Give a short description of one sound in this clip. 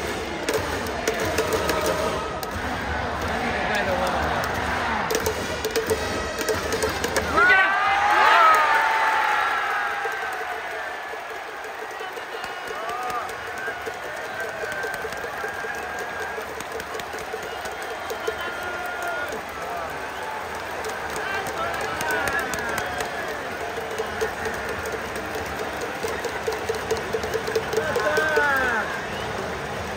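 Fans bang plastic noisemaker bats together in a rapid rhythm.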